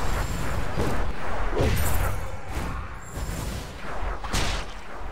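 Magic spells burst with bright whooshing blasts.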